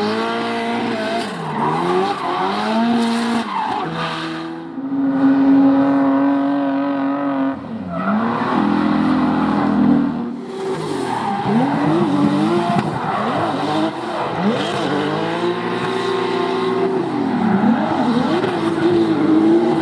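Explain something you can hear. Tyres screech on tarmac as a car drifts.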